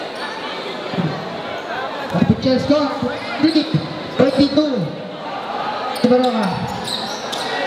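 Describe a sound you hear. A man shouts loudly nearby.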